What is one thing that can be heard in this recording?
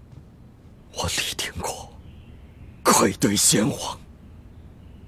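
A middle-aged man speaks forcefully nearby.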